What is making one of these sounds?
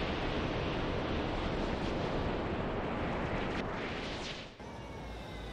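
A spacecraft engine roars with a loud, steady rushing whoosh.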